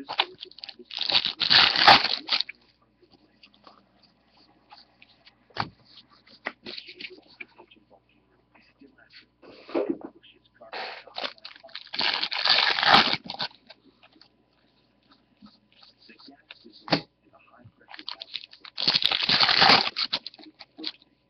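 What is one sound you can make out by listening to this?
A foil wrapper crinkles and tears open noisily.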